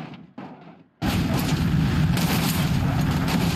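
A loud explosion bursts suddenly.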